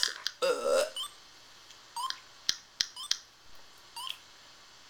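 A handheld game beeps briefly as its timer counts down.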